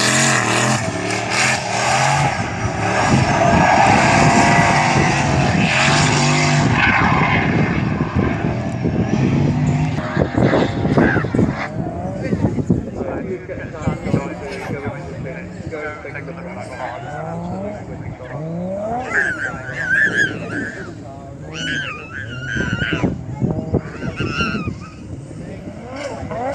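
A car engine revs hard and rises and falls in pitch.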